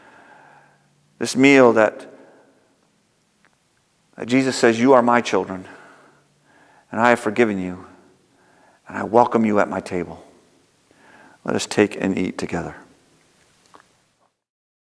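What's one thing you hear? A middle-aged man speaks calmly in short phrases, heard through a microphone in a reverberant room.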